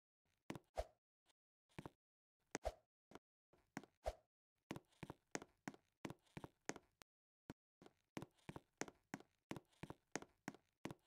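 A game character jumps again and again, with short thumping sounds.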